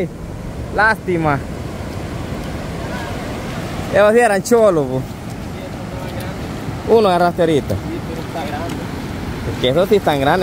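Waves wash steadily onto a beach outdoors.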